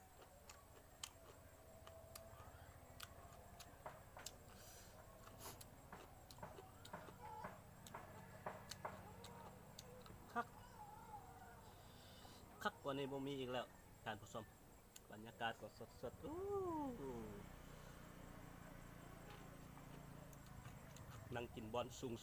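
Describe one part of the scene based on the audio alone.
A young man chews and smacks loudly while eating.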